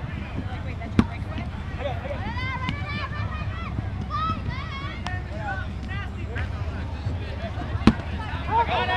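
A foot kicks a rubber kickball with a hollow thud.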